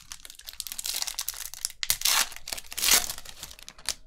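A foil wrapper tears open.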